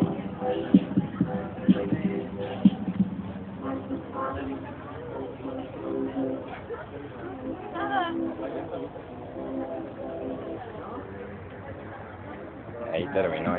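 A mobile phone game plays tinny electronic music.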